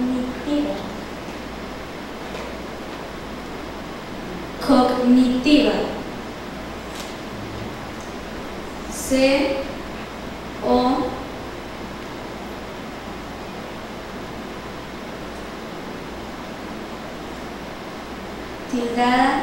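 A young girl speaks slowly and clearly into a microphone, in short phrases with long pauses.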